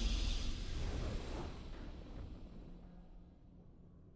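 A short triumphant game fanfare plays and fades away.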